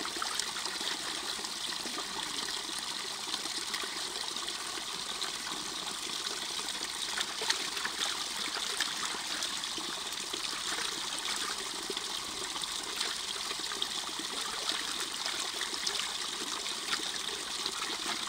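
Hands slosh and splash water while rinsing raw meat.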